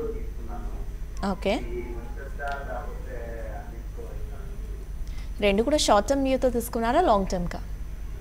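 A young woman reads out the news calmly through a microphone.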